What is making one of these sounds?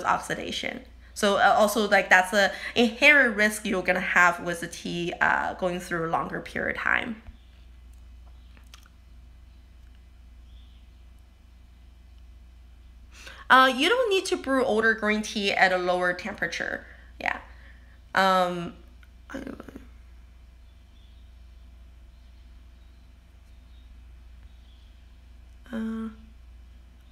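A woman talks with animation close to a phone's microphone, pausing at times.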